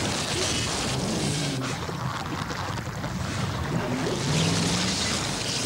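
A vehicle splashes heavily through water.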